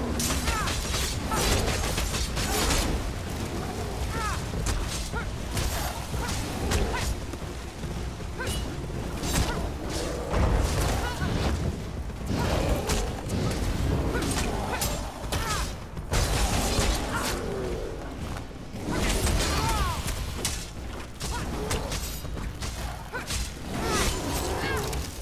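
Weapons clash and strike in a fast fight.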